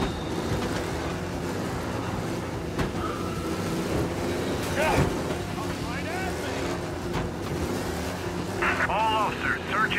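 A racing car engine roars steadily.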